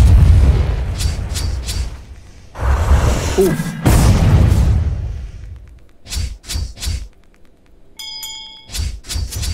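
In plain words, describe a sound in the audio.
Magic blasts whoosh and boom in quick bursts.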